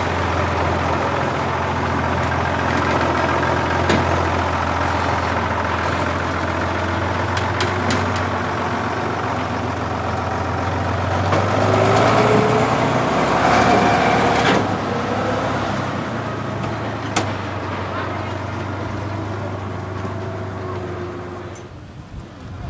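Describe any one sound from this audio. A heavy truck engine rumbles steadily nearby.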